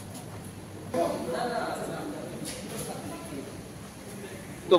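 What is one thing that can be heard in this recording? Men and women murmur quietly nearby in an echoing hall.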